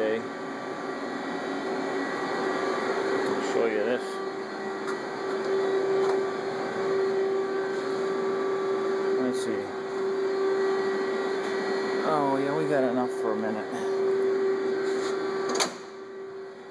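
A CNC milling machine hums steadily.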